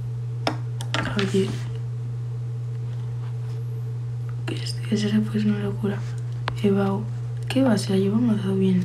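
A young woman speaks casually and close up, into a phone microphone.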